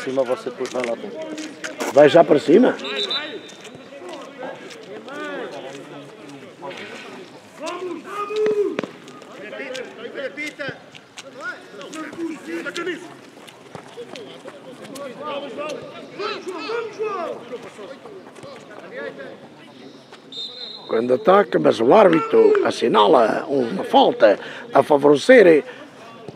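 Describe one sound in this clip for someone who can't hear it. Young men shout and call to each other outdoors at a distance.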